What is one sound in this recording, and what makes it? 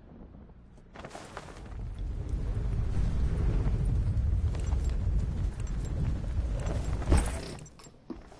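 Wind roars loudly past a wingsuit flyer in free fall.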